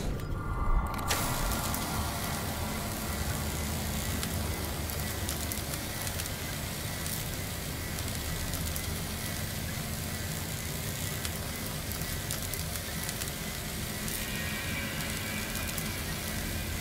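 A repair tool buzzes and crackles steadily.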